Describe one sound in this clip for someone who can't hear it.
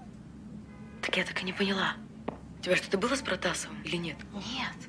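A young woman speaks with emotion close by.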